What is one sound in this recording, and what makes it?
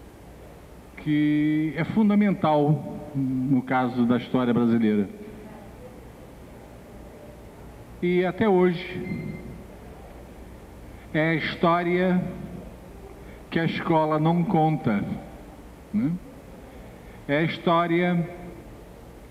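An older man speaks into a microphone in short, expressive phrases with pauses between them.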